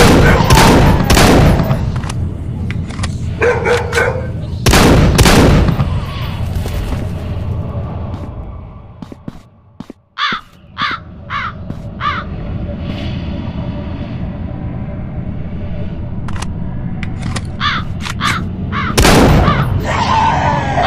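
A sniper rifle fires loud single shots.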